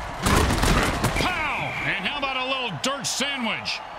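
Armored players crash together in a heavy tackle.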